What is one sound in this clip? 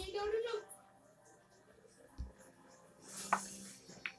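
Pool balls click together on a table.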